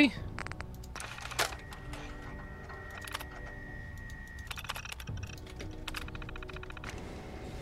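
A computer terminal beeps and clicks as text prints out.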